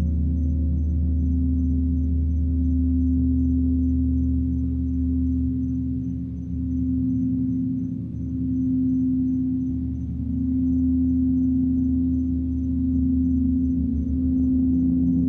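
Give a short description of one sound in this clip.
A singing bowl rings with a steady, swelling hum.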